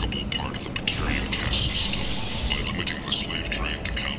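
A metal door slides open with a hiss.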